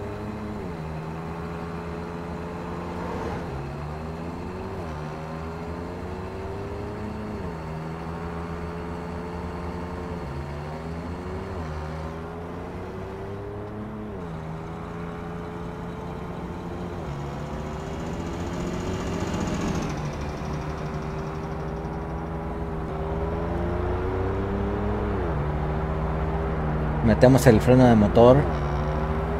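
A truck engine drones steadily, rising in pitch and dropping again as the gears shift.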